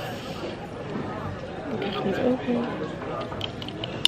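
A young woman sips a drink from a can.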